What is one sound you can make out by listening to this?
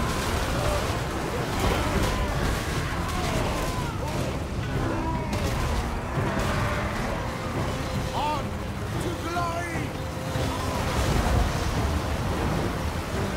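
Many soldiers shout in a battle.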